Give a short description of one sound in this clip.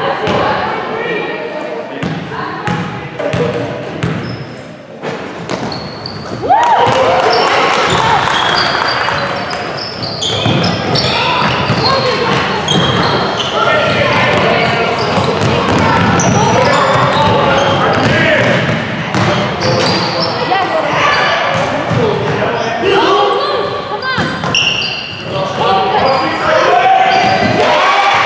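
Young players and spectators shout and cheer in an echoing gym.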